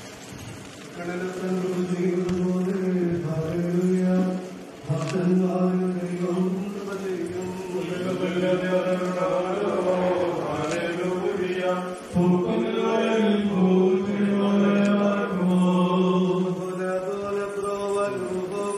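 A man chants a prayer in a steady, sung voice.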